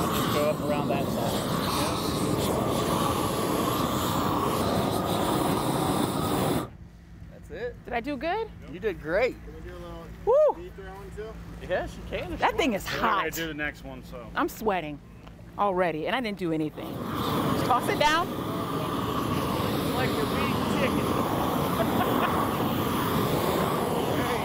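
A propane torch roars steadily.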